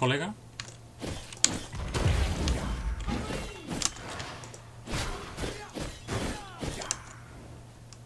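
Game sound effects of combat clash and whoosh.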